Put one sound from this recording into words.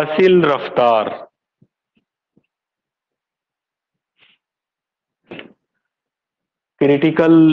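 A middle-aged man speaks calmly and clearly into a close microphone, with pauses.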